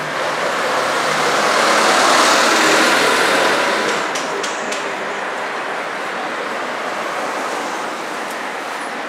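Traffic swells and rushes past on a nearby street.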